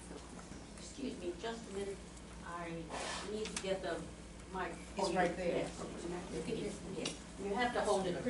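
An elderly man speaks to a group.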